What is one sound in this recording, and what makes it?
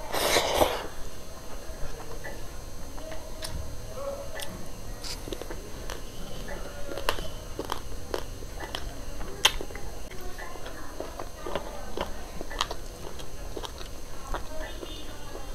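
A woman chews food noisily, close to a microphone.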